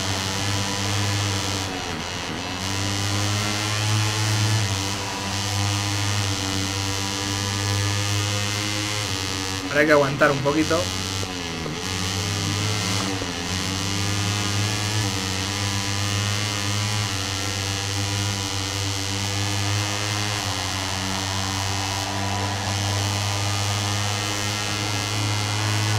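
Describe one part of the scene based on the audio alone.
A game motorbike engine whines steadily, rising and falling with gear changes.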